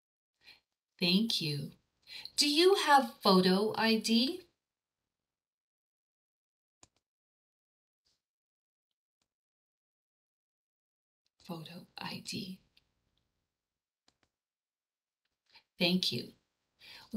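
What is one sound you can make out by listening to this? A woman speaks calmly into a microphone, explaining in short phrases.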